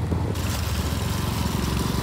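A motorcycle engine hums along a road.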